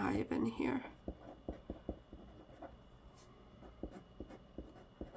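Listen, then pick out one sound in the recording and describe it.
A pen writes on paper with soft scratches and taps.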